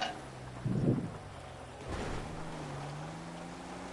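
A truck lands hard with a heavy thud.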